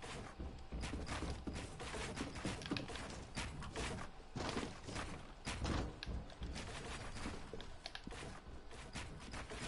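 Wooden walls and ramps clatter as they are built rapidly in a video game.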